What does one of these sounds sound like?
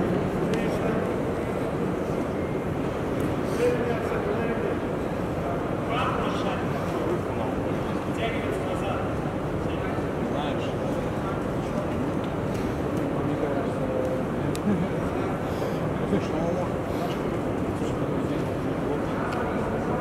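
Two grapplers' bodies shift and thump on a padded mat.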